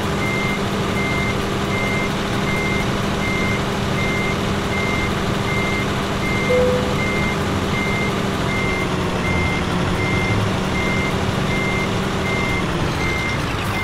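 A truck engine rumbles steadily, then drops away.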